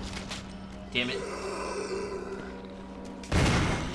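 A zombie groans low and hoarsely.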